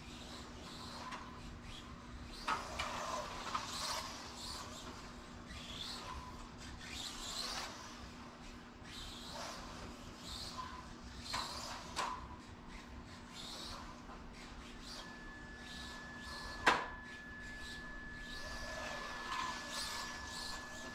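Small electric model cars whine as they race past, rising and falling again and again.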